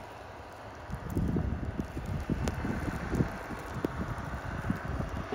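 Wind gusts loudly outdoors in a snowstorm.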